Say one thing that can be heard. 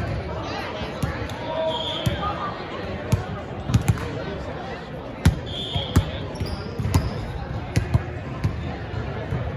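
A volleyball thumps off players' arms and hands in a large echoing gym.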